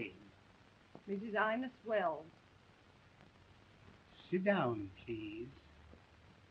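A woman speaks firmly.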